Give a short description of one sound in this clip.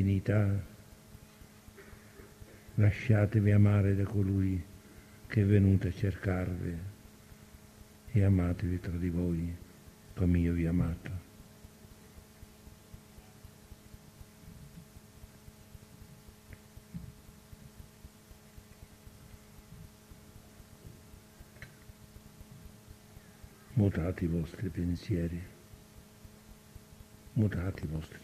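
An elderly man speaks slowly in short phrases with long pauses.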